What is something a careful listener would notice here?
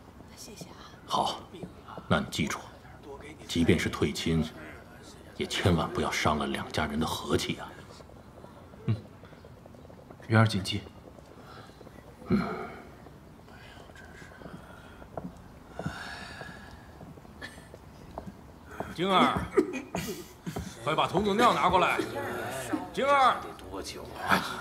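A middle-aged man speaks calmly and firmly nearby.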